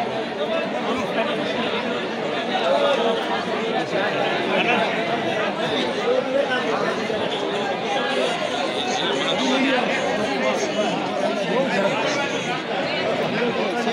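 A crowd of men and women chatters all around, close by.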